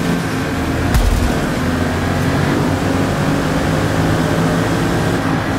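A racing car engine roars steadily as it speeds up.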